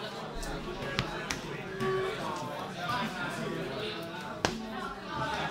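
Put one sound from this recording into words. Playing cards tap down onto a tabletop mat.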